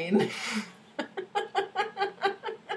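Two young women laugh over an online call.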